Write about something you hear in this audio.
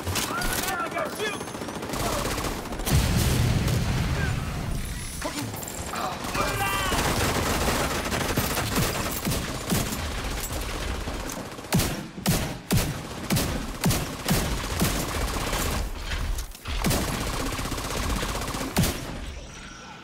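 Gunfire rattles in rapid bursts, close by.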